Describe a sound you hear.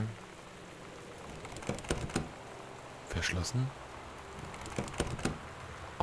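A locked door rattles as its handle is tried.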